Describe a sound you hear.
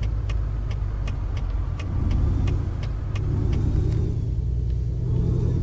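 A truck engine drones steadily with a deep rumble.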